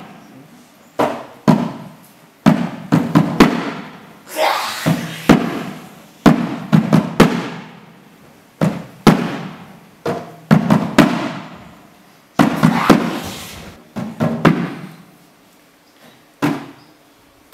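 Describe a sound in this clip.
Hands and feet thump and slap on a wooden floor.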